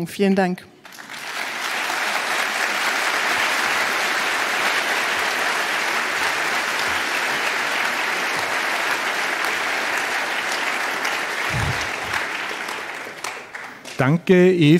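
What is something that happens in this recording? A large audience applauds in a big hall.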